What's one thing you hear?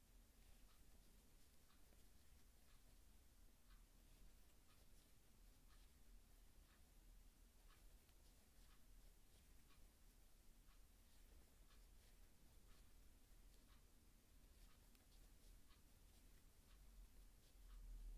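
A metal crochet hook clicks faintly and steadily as it pulls yarn through stitches.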